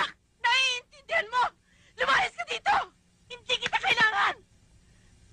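A man shouts angrily.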